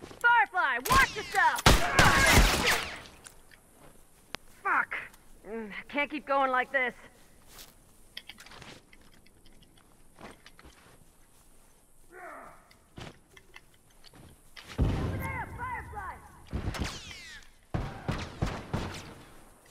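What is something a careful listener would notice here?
Gunshots crack loudly in bursts.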